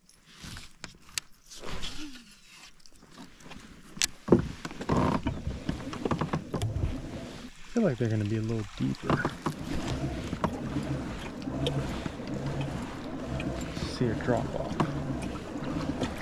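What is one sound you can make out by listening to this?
Water laps gently against a small boat.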